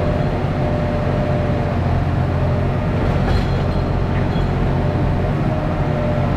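A diesel excavator engine rumbles steadily up close.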